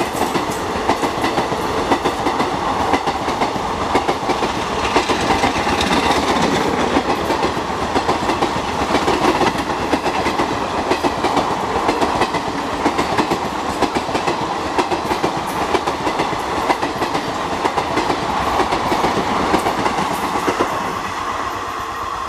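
A passenger train rumbles past close by on the tracks.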